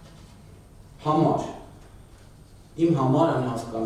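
A middle-aged man reads aloud from papers in bursts.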